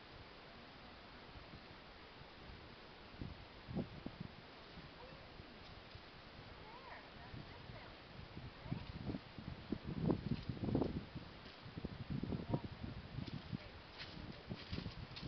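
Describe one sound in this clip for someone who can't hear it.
A horse shifts its hooves on soft sand.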